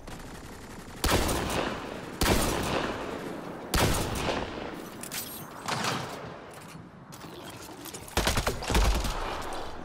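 A sniper rifle fires loud, sharp shots that echo away.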